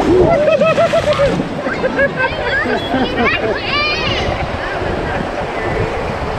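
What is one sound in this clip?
River rapids rush steadily outdoors.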